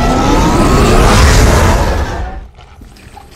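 An energy beam blasts with a loud roaring whoosh.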